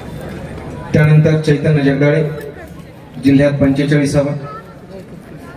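A man speaks loudly over a loudspeaker.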